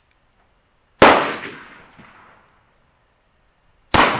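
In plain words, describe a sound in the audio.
A revolver fires a loud shot that echoes outdoors.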